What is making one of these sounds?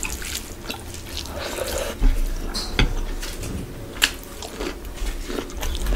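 A woman chews food close to a microphone.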